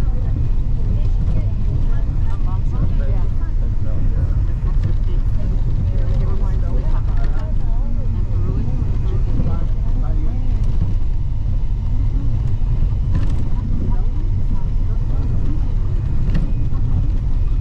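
Wind blows hard and rumbles steadily outdoors.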